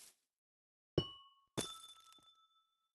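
A crystal block rings with bright chiming tones.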